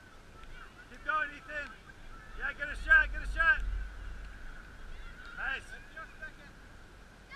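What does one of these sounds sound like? Players shout to each other across an open field in the distance.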